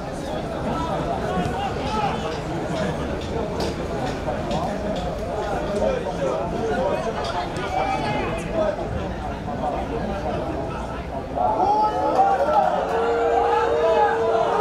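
Players kick a football with dull thuds.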